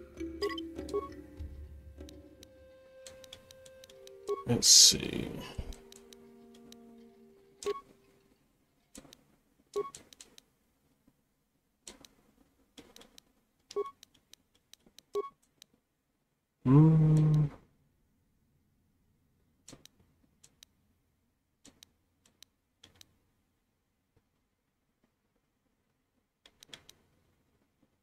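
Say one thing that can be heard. Game menu sounds click and chime as selections change.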